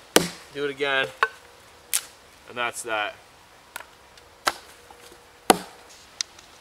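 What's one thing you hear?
Wooden sticks knock and snap.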